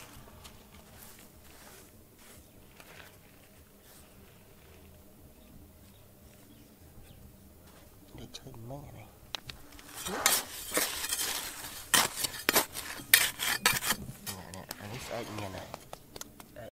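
Fingers brush through dry grit.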